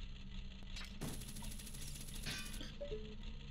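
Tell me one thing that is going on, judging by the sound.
A chain whirs out with a fast metallic rattle.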